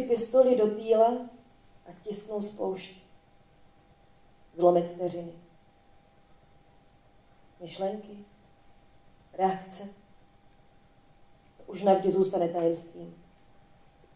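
A woman speaks calmly into a microphone, with pauses between phrases.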